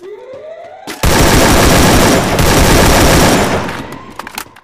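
A rifle fires a long rapid burst of loud shots.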